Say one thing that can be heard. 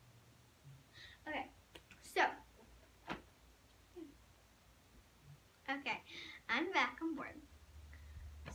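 A young girl speaks with animation close by.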